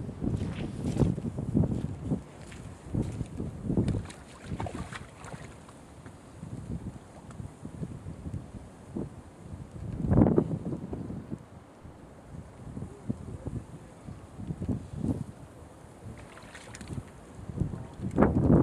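Wind gusts across open water and rustles reeds.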